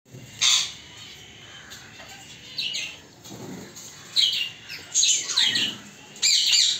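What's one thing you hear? Parrots squawk and screech loudly in short bursts.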